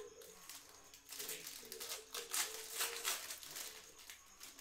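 Plastic wrappers rustle and crinkle as they are handled.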